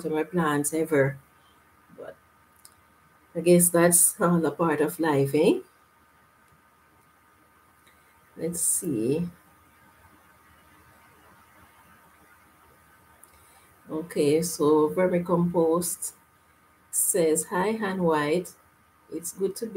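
A woman talks calmly and close to a microphone, with pauses.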